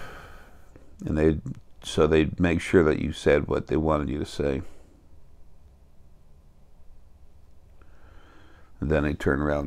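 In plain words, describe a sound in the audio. An elderly man speaks calmly and close into a microphone, with pauses.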